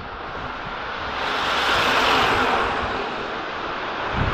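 A shuttle bus drives past close by.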